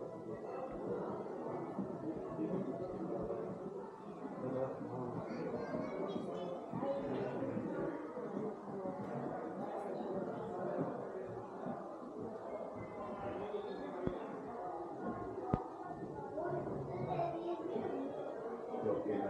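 Several people talk at once in a room.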